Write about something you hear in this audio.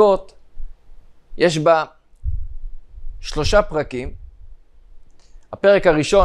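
A young man speaks calmly and with emphasis into a close microphone.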